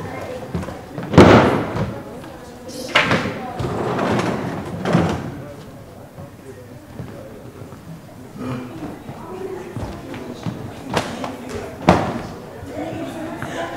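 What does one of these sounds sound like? A young man speaks out alone on a stage in a large hall.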